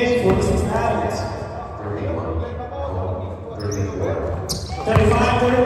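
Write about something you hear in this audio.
A crowd of spectators chatters in a large echoing gym.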